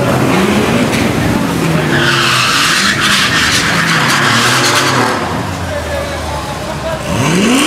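Race cars accelerate away with a roar.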